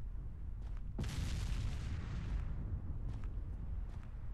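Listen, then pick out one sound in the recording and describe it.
Wind whooshes across open snow.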